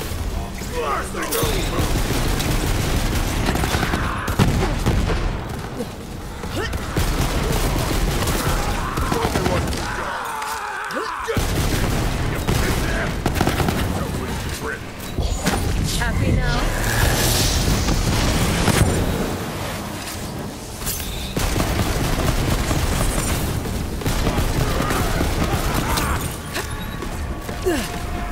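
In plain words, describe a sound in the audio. Guns fire rapidly in loud bursts.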